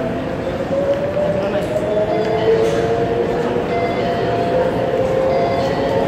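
Footsteps scuff on a hard floor nearby.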